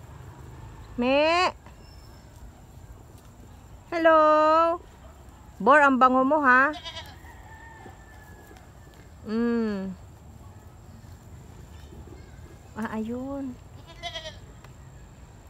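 A goat bleats loudly and repeatedly nearby.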